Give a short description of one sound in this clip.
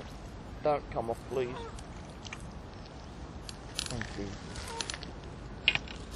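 A fish leaps and splashes in the water nearby.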